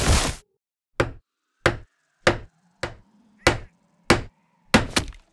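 A hammer knocks on wood at a steady pace.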